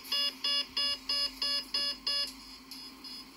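A tram's warning chime beeps quickly several times.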